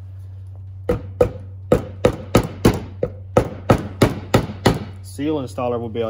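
A hammer taps repeatedly on metal.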